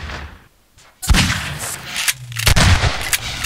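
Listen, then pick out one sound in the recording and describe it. A shotgun fires loudly, with booming blasts.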